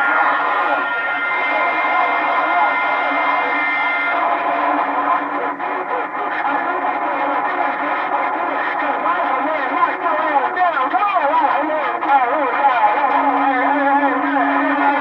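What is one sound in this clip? A CB radio loudspeaker hisses with static and whistling tones.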